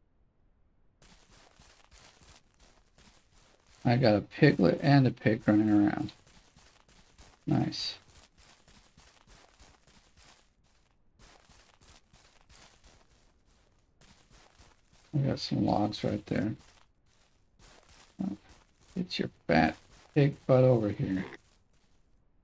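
Footsteps run quickly through grass.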